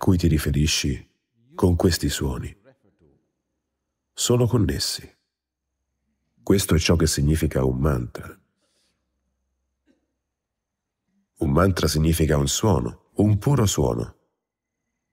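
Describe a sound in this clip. An elderly man speaks calmly and deliberately into a microphone, with long pauses.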